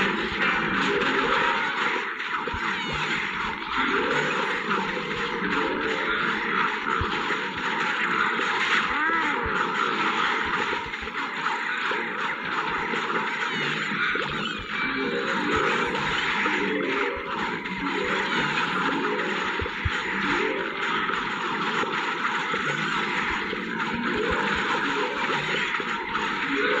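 Cartoon pea shooters pop rapidly as they fire.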